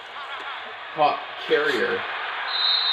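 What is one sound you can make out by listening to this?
Football players collide hard in a tackle.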